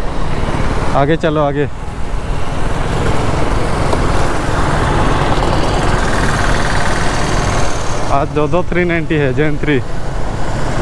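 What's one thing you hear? A motorcycle engine hums and briefly revs up and down.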